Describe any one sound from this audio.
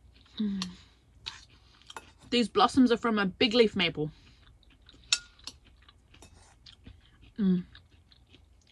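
A woman hums with pleasure while eating.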